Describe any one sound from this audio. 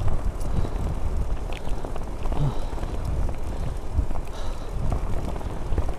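Wind rumbles hard against a moving microphone outdoors.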